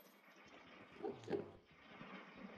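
A wooden block is placed with a soft knock.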